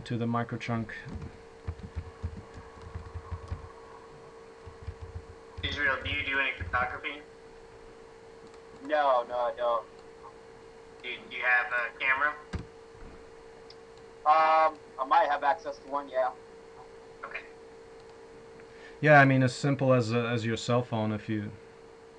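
A middle-aged man talks calmly over an online call, in bursts with pauses.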